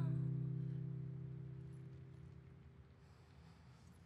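A guitar chord rings out and slowly fades away.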